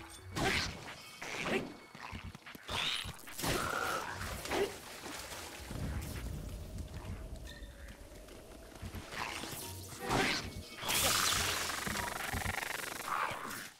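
Swords clash and strike in a game fight.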